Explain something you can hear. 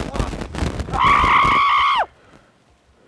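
A man screams loudly.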